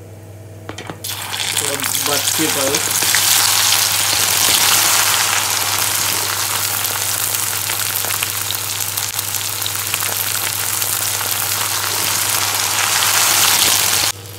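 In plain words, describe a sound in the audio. Okra sizzles loudly in hot oil in a pan.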